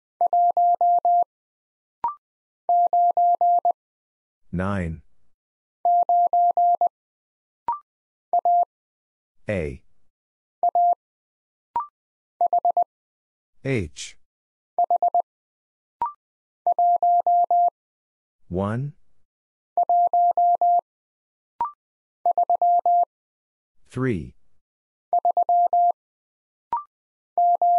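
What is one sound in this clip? A telegraph key beeps out Morse code in short, steady tones.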